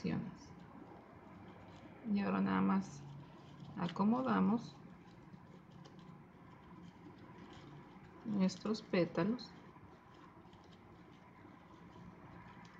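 Satin fabric rustles softly as fingers handle it.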